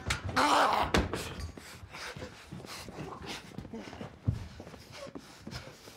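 A man grunts while struggling.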